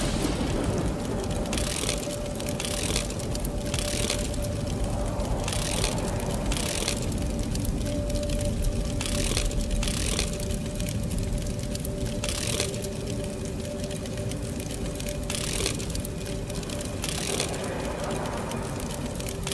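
Metal knobs slide and clunk along grooves in a panel.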